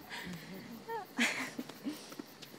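A young woman laughs softly nearby.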